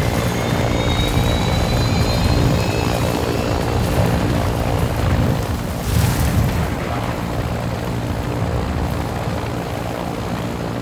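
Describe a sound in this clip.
Wind rushes loudly through an open hatch.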